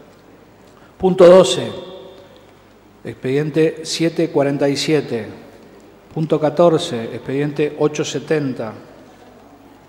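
A man speaks into a microphone in a room with some echo.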